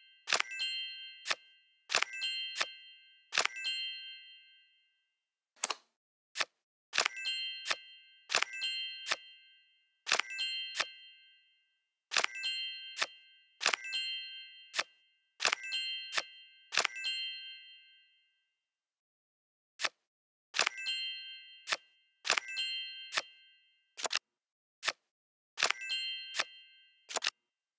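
Game cards click into place with bright, ringing chimes, again and again.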